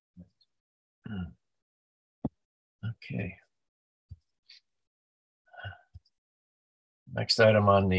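A man speaks in short, halting bursts over an online call.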